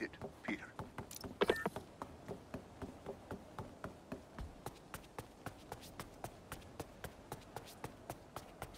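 Quick footsteps patter steadily on a hard surface.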